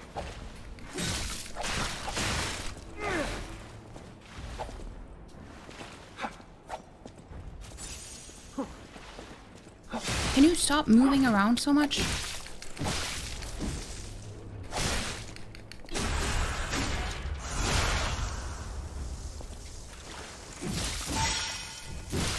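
Blades clash and strike in quick, sharp blows.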